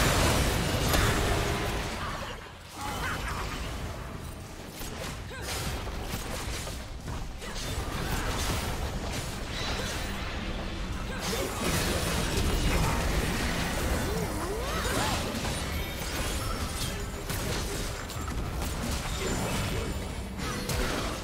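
Spell blasts and weapon hits crackle and boom in a game battle.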